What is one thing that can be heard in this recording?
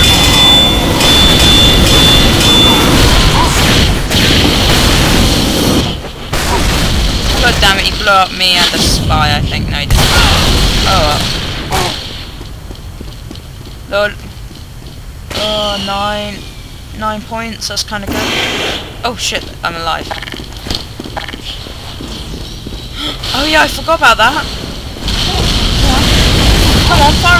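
A flamethrower roars with a rushing blast of fire.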